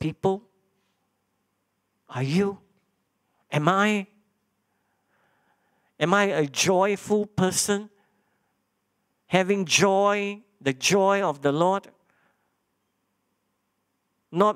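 A man preaches through a microphone, speaking in short phrases with pauses.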